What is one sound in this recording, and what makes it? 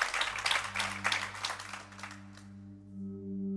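Metal plates shimmer and crash rapidly.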